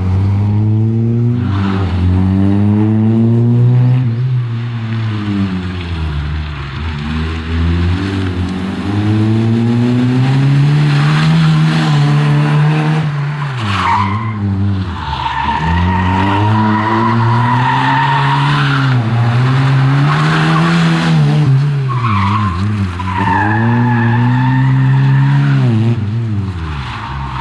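A small four-cylinder rally hatchback revs hard and shifts gears as it races past.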